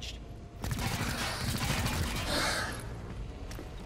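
A laser gun fires with a loud buzzing crackle.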